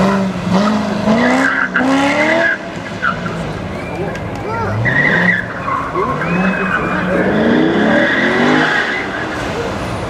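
Car tyres squeal on pavement.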